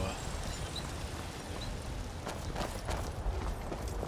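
Armoured footsteps clink on stone.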